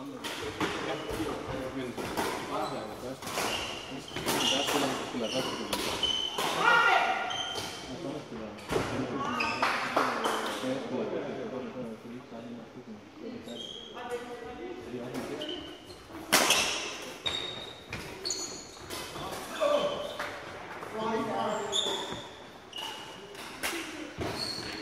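Badminton rackets smack shuttlecocks in a large echoing hall.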